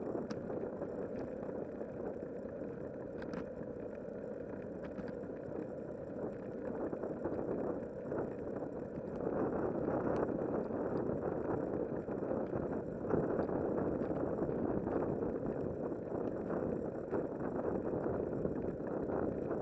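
Bicycle tyres roll over a paved path.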